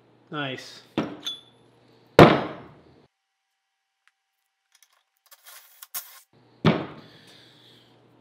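Metal tools clank and knock down onto a workbench.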